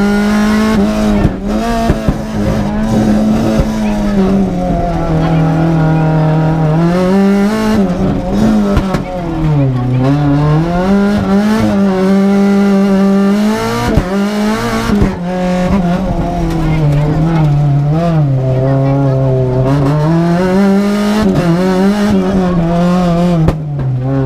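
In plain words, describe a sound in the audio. A rally car engine roars loudly from inside the car, revving up and down.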